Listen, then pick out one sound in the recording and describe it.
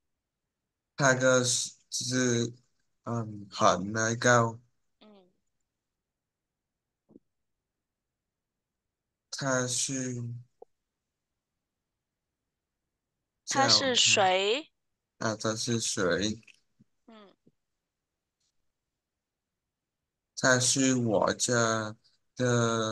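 A man speaks calmly, in short phrases, through an online call.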